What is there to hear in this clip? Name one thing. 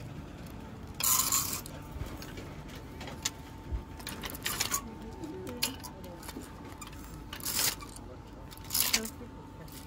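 Wooden hangers clack and scrape along a metal rail.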